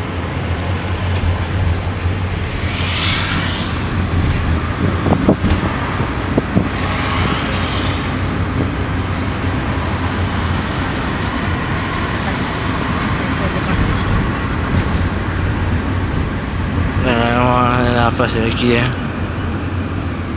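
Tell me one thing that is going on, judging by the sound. Traffic passes by outside.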